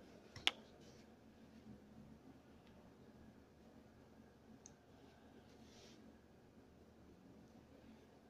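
A comb runs softly through hair.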